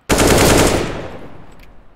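A rifle fires a loud burst of shots.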